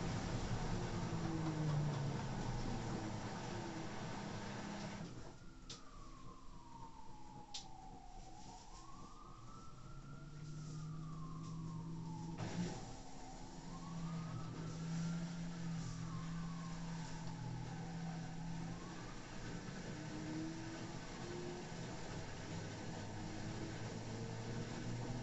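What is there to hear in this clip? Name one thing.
Water and laundry slosh inside a washing machine.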